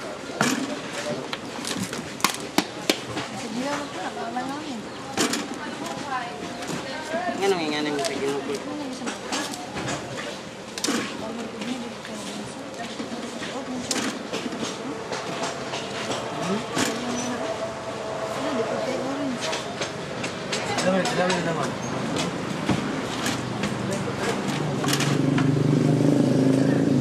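Several men talk nearby in a lively way.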